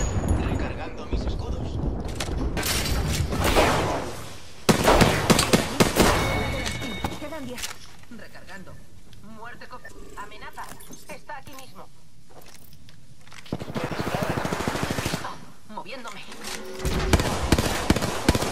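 Guns fire in rapid bursts, close by.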